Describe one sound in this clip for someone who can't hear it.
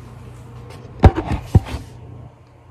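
Handling knocks and bumps sound close by.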